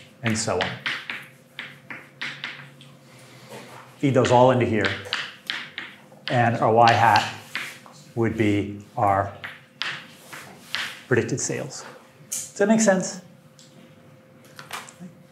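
A middle-aged man lectures clearly, with pauses.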